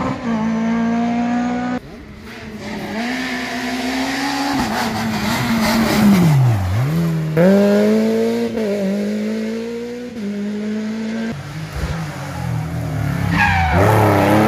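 A rally car engine revs hard and changes gear as the car speeds past.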